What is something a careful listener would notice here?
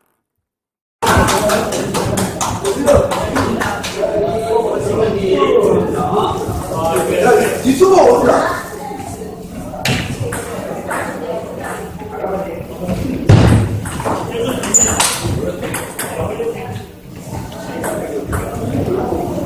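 People chatter in the background of an echoing hall.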